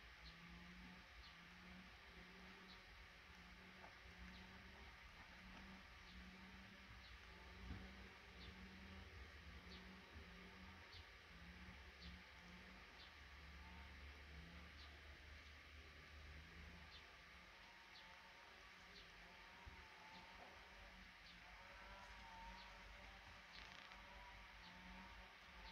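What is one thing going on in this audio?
Nestling birds peep softly and repeatedly, close by.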